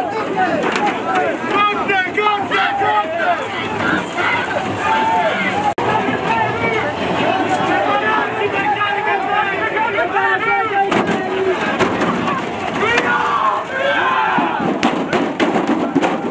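Plastic shields knock and clatter against batons.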